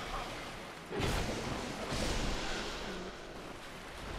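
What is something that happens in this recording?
A sword swings and strikes with sharp metallic hits.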